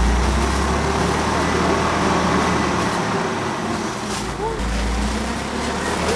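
Heavy sacks slide and thud onto the ground.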